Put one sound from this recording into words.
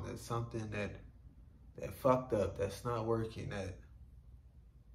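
A young man speaks calmly, close by.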